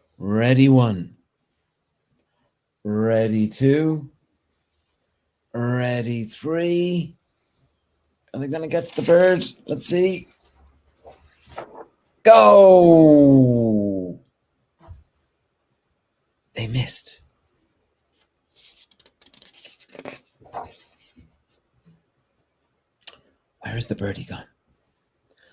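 A man reads aloud expressively, close to a microphone.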